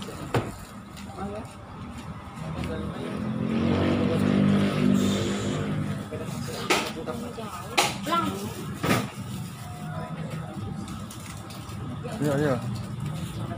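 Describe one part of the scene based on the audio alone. Plastic snack wrappers crinkle in hands.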